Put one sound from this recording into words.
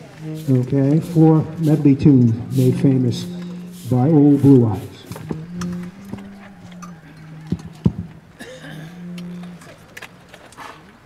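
A concert band plays a lively tune outdoors.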